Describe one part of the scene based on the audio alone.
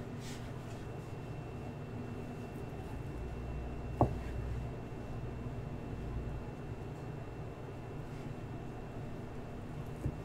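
A knife taps on a wooden cutting board while slicing mushrooms.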